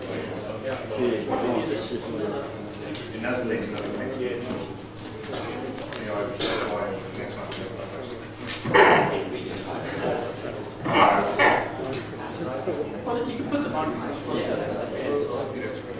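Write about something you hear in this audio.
A man talks steadily to an audience in a reverberant room.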